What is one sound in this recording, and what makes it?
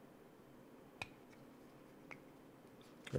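Small plastic parts click softly together.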